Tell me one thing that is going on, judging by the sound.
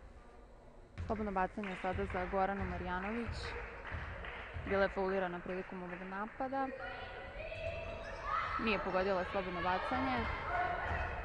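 A young woman shouts out in a large echoing hall.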